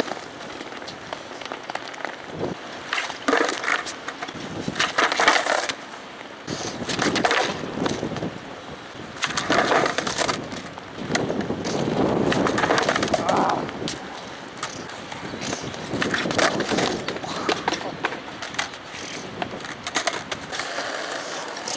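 Skateboard wheels roll over concrete outdoors.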